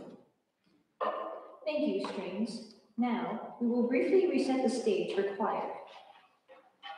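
A young woman speaks calmly into a microphone in an echoing hall.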